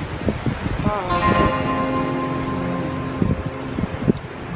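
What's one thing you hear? An acoustic guitar chord is strummed and rings out.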